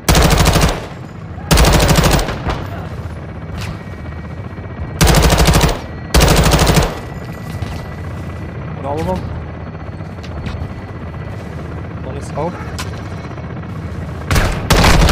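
An automatic rifle fires loud, rapid bursts.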